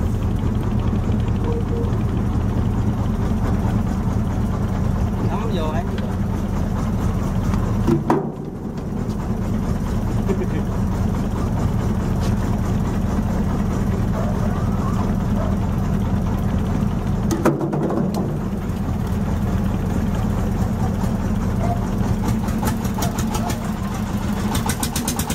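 A boat engine rumbles steadily close by.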